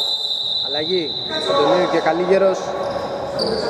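Young men call out to each other across an echoing hall.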